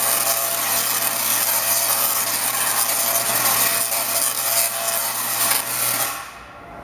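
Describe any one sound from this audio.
Electric sparks crackle and buzz loudly.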